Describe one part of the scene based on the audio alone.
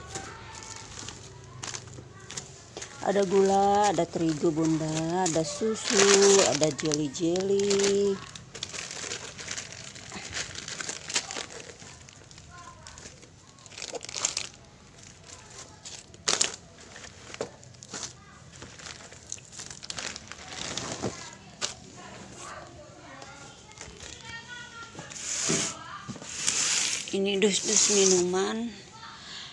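Plastic bags and snack wrappers rustle and crinkle as hands rummage through them.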